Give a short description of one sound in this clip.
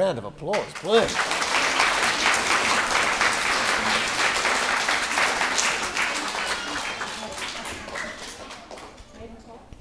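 A hand drum is beaten with rapid hand strikes in a large echoing hall.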